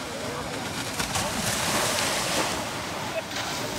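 A wave breaks and crashes onto the shore.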